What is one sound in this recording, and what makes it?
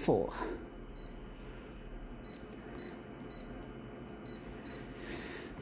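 A copier's touch panel beeps softly as keys are tapped.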